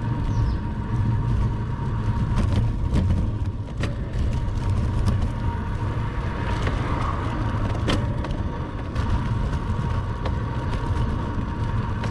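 Wind rumbles loudly against a moving bicycle.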